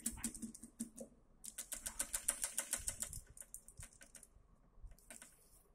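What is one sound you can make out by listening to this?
Small plastic parts click and tap rapidly close by.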